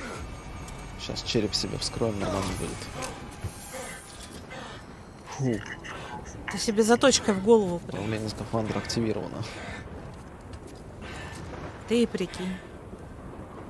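A man gasps and groans heavily inside a helmet.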